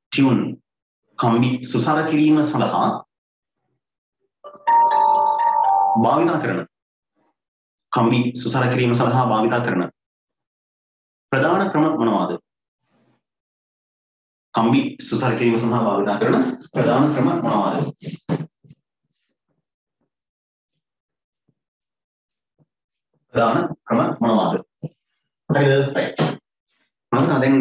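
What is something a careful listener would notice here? A man speaks calmly into a close microphone, explaining in short phrases.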